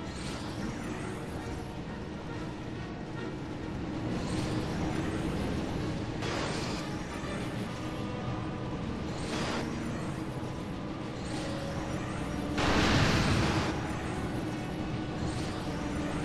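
A car engine drones.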